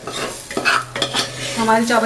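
A spoon scrapes through cooked rice in a metal pot.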